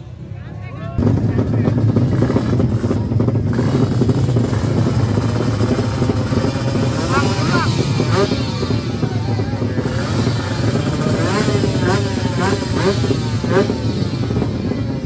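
Motorcycle engines rumble loudly nearby.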